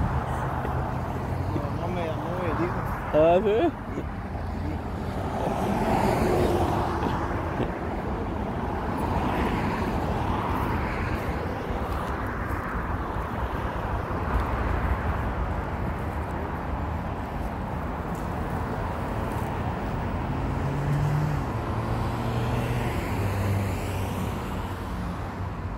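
Traffic hums steadily on a nearby road.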